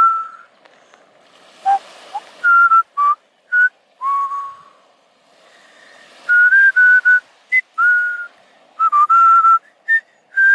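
Small waves lap gently on a sandy shore.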